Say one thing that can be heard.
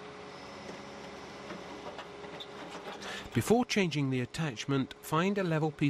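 An excavator's engine hums steadily.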